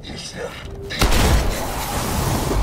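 A loud blast booms.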